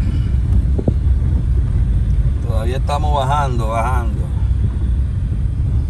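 A car rumbles steadily along a bumpy road from inside the cabin.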